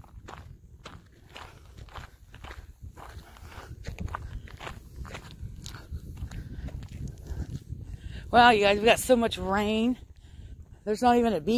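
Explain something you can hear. Footsteps tap on concrete.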